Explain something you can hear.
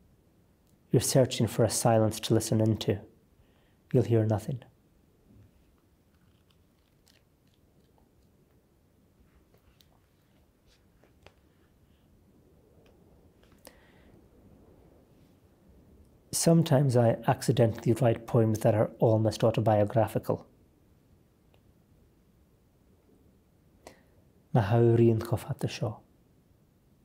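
A man reads aloud calmly and clearly, close to a microphone, with long pauses.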